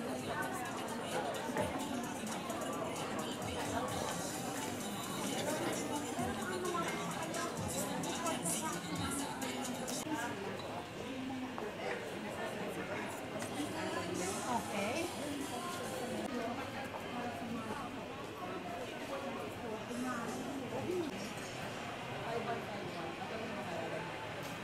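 A middle-aged woman talks warmly up close.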